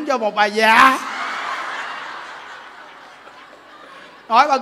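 A crowd claps their hands in applause.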